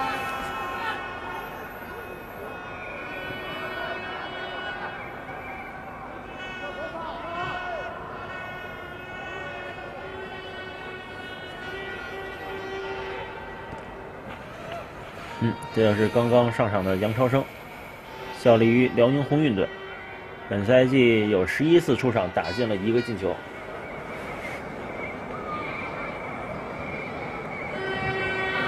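A large crowd chants and cheers throughout an open stadium.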